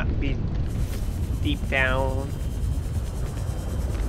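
A small underwater vehicle hums.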